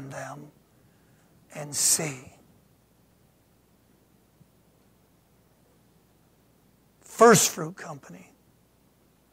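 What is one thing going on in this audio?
A middle-aged man speaks calmly into a microphone, with long pauses, in a quiet room.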